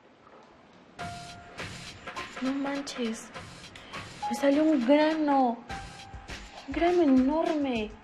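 A young woman speaks in a startled voice up close.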